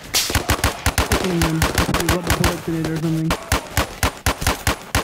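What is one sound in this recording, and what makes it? A rifle fires rapid shots close by.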